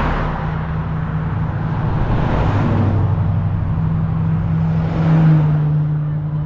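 A car approaches along the road with an engine hum and passes close by.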